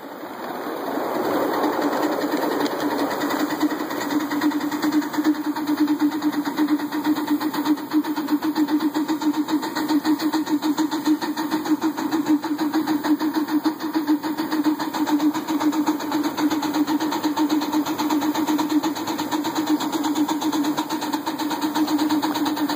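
A small steam locomotive chuffs rapidly as it runs along the track.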